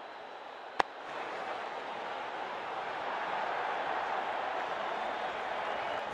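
A large crowd cheers steadily, swelling louder.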